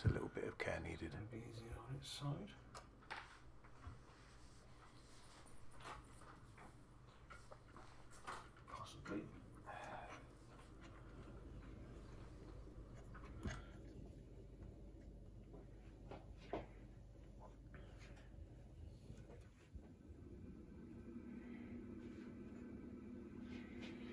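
Plastic and metal parts clack and knock as a device is taken apart by hand.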